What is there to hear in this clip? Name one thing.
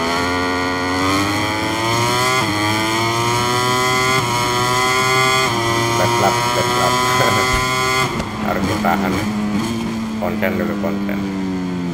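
A motorbike engine roars and climbs in pitch through quick gear changes, then drops as it slows.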